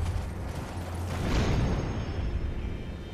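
A sudden whoosh sounds as a horse leaps high into the air.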